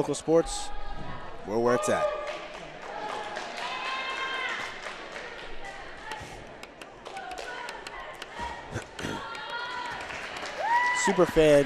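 Young women shout a cheer in unison in a large echoing hall.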